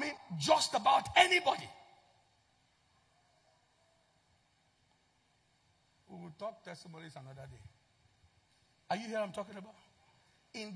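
A man speaks expressively into a microphone, with long pauses.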